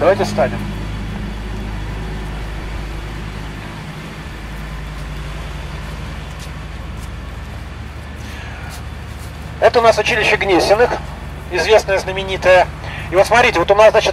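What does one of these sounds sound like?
A low, steady rumble of street traffic carries throughout.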